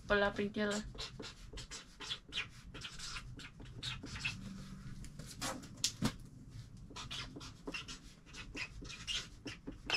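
Cardboard boxes rustle and tap as they are handled.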